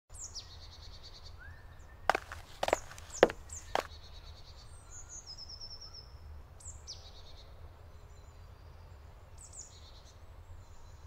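Birds chirp in a forest.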